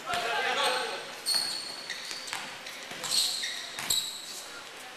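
A basketball bounces with hollow thuds in an echoing hall.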